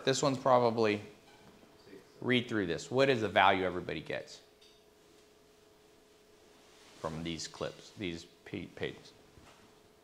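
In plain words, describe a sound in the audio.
A man speaks calmly and close by, with long pauses.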